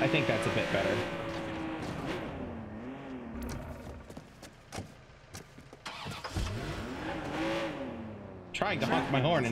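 A sports car engine revs and drones.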